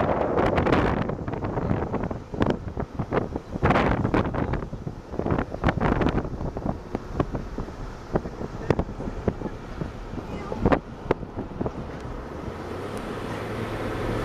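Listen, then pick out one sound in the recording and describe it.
Wind blows in gusts outdoors, rumbling against the microphone.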